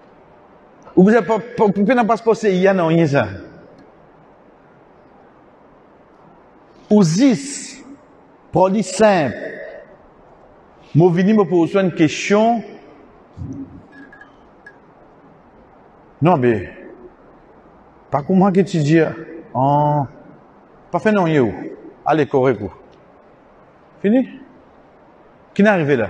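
A man speaks calmly into a microphone, in bursts with long pauses.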